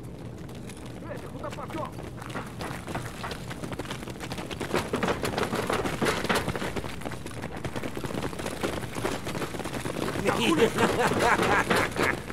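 A crowd of zombies groans and snarls close by.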